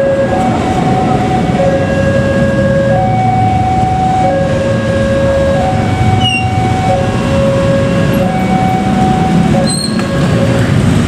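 A train rumbles and clatters past on the tracks.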